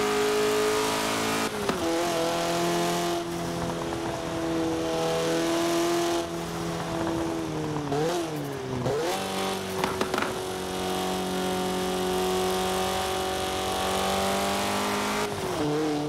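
A sports car engine hums steadily at speed, dipping in pitch with each gear change.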